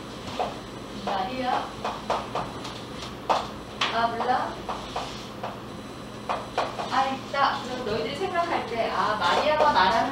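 A woman speaks calmly, as if teaching.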